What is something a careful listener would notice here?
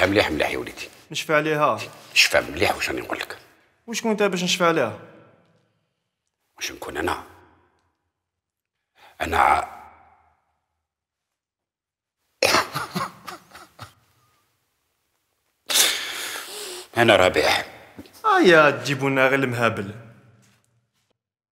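A young man speaks earnestly at close range.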